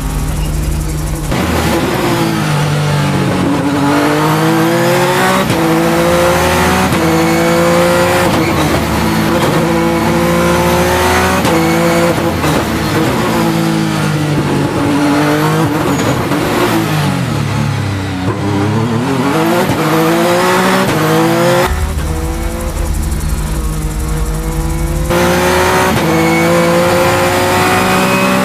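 A race car engine roars loudly, revving up and shifting through gears again and again.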